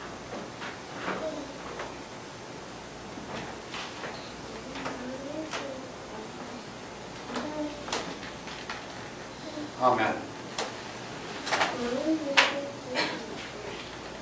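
An elderly man speaks calmly and softly nearby.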